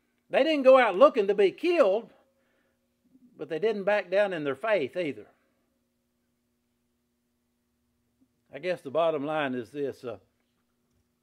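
A middle-aged man speaks with emphasis in short phrases, with pauses between them.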